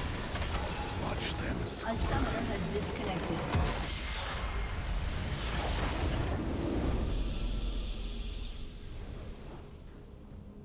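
Loud battle sound effects crash and burst in a video game.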